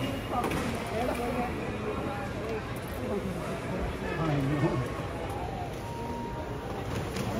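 A crowd of people chatters indoors in a large, echoing hall.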